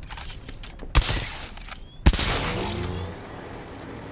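An electrical charge zaps with sharp, crackling bangs.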